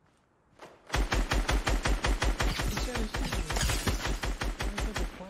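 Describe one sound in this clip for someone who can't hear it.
A rapid burst of automatic gunfire rattles on and on.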